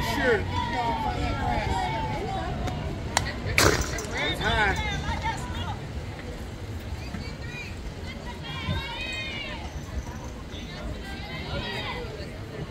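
Young women call out and chant from the field.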